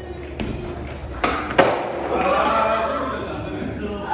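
Skateboard wheels roll across a wooden floor.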